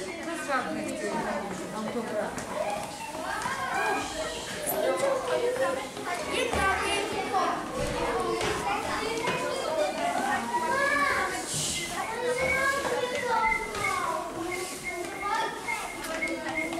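Many small feet patter down stone stairs.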